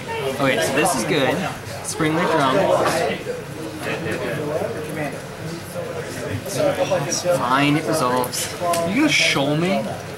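Playing cards are set down on a table.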